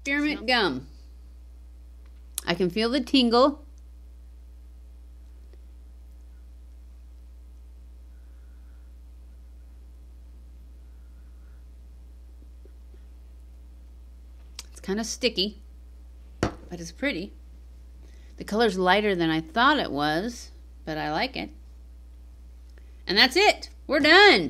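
A middle-aged woman talks calmly and closely into a microphone, with pauses.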